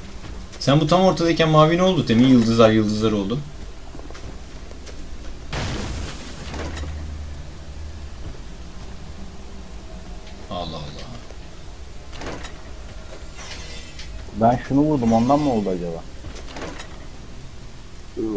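Metal weapons clash in a fight.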